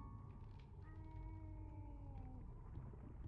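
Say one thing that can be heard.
An organ plays a few sustained notes.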